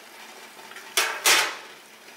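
A plate clinks against a metal steamer pot.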